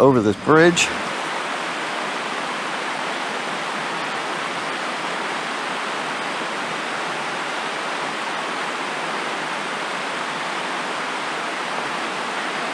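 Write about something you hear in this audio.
A stream rushes steadily nearby.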